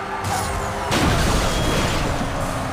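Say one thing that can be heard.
A car crashes into another car with a loud metallic crunch.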